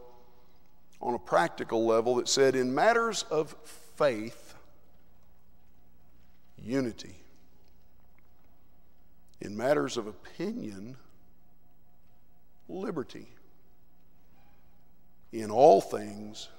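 A man preaches into a microphone in a large echoing hall, speaking in short, emphatic phrases with pauses.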